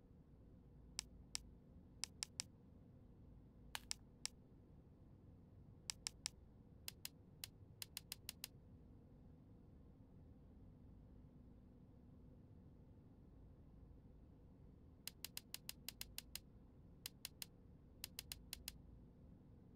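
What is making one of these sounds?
Soft menu clicks tick in short quick runs.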